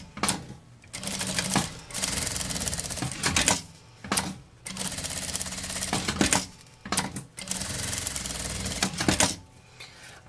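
A sewing machine whirs as it stitches in quick bursts.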